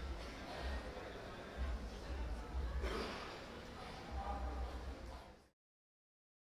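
A man speaks through a microphone in a large hall.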